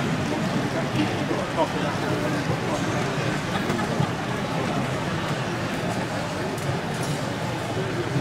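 A model train rumbles softly along the track.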